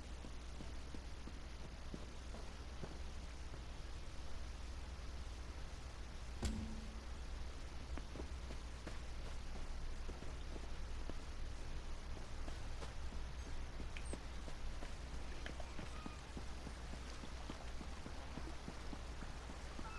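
Footsteps tread over grass and stone at a steady walking pace.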